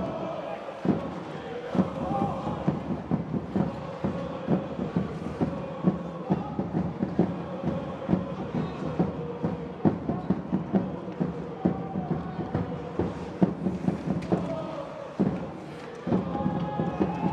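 Hockey sticks clack sharply against a puck and each other.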